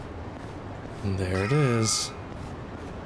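A man speaks briefly into a close microphone.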